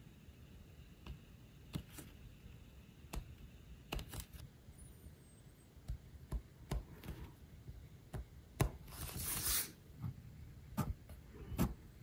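A metal awl taps and scratches against leather.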